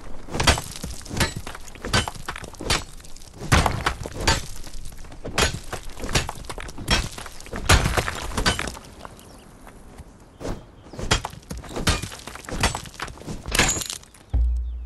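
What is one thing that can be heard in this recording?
A pickaxe strikes stone in sharp, repeated blows.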